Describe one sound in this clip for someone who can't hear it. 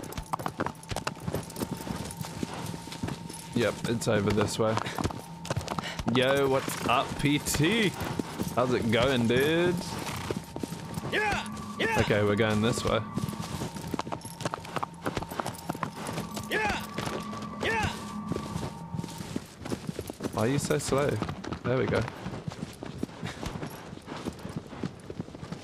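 A horse gallops with hooves thudding on grass.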